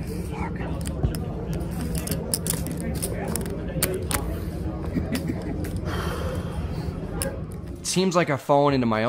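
Poker chips click and clatter as a player shuffles them.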